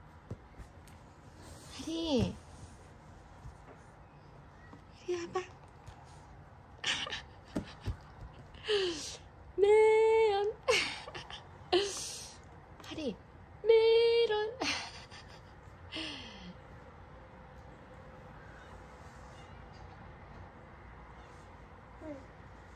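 A toddler babbles softly.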